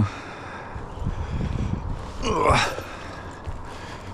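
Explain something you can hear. Footsteps scuff on a rough roof surface.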